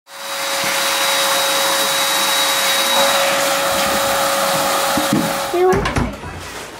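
An electric balloon pump hums and blows air loudly.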